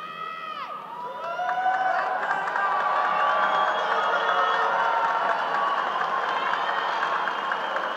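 A woman speaks into a microphone over loudspeakers in a large echoing hall.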